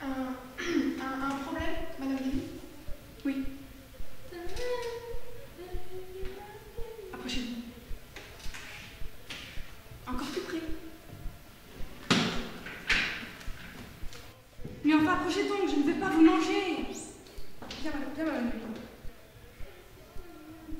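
Another young woman answers in a conversational voice.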